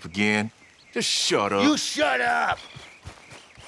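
Another man answers angrily, close by.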